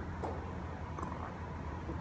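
A man sips a drink.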